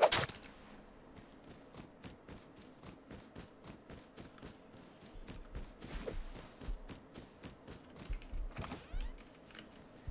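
Footsteps tread through grass.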